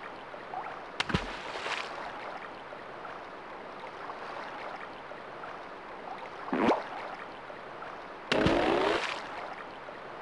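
Bubbles fizz and burst in short bursts.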